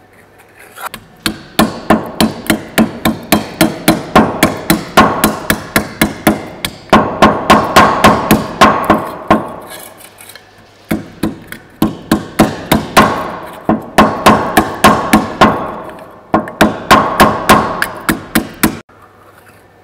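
A wooden mallet strikes sheet metal in rapid, ringing blows.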